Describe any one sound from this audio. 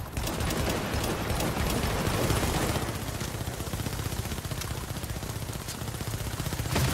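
A helicopter's rotors thump loudly overhead.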